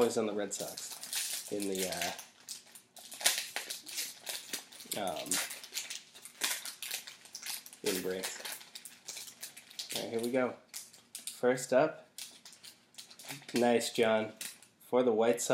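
A foil card wrapper crinkles and tears open.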